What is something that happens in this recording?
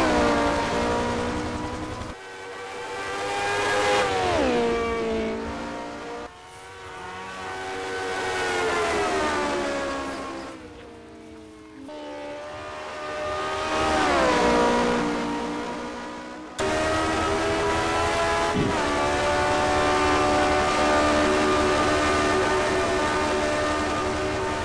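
A racing car engine roars past, its pitch rising and falling as it shifts gears and passes by.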